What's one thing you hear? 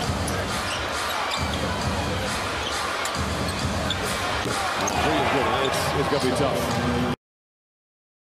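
A large indoor crowd cheers and murmurs, echoing around an arena.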